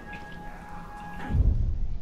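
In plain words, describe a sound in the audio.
Footsteps squelch through mud.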